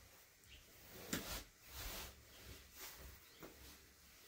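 Cloth rustles softly as a person shifts while kneeling.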